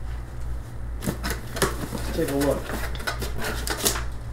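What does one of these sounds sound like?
Cardboard flaps rustle as a box is opened.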